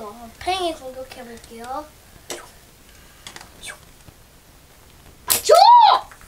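Plastic toy pieces click together.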